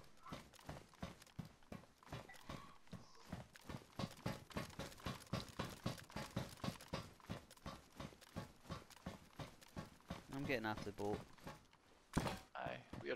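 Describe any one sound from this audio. Footsteps clang quickly and steadily on metal floors and stairs.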